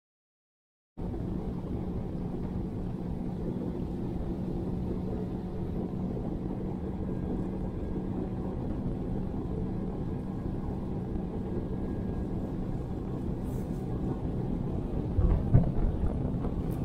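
An electric boat motor hums steadily.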